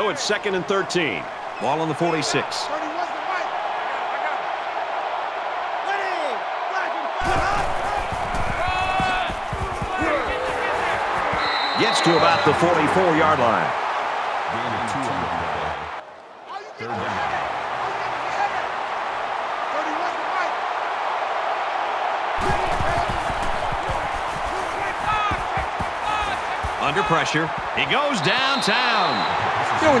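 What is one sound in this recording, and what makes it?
A large crowd cheers and roars steadily in a big open stadium.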